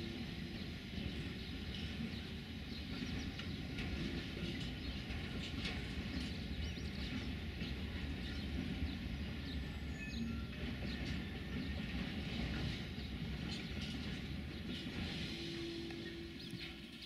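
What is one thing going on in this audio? A distant train rumbles slowly along the tracks.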